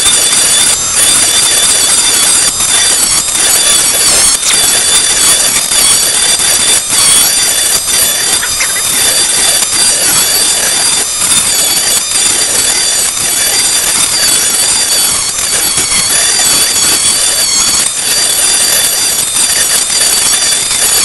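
A rotary tool whines steadily at high speed.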